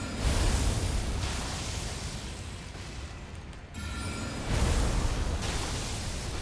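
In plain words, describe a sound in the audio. Magic blasts whoosh and rumble in a game.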